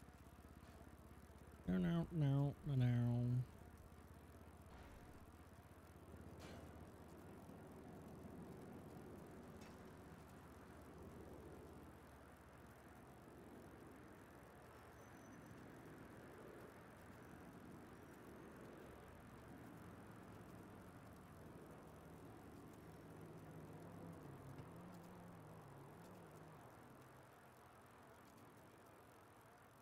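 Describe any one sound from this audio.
A BMX bicycle rolls over asphalt.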